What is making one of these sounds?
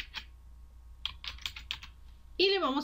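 Keyboard keys click rapidly as someone types.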